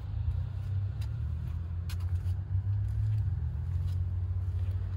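Footsteps scuff on pavement close by.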